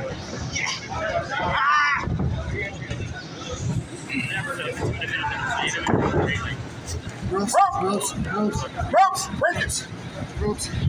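A man grunts with effort.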